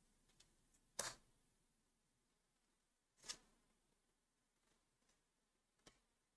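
Playing cards are laid down with soft taps.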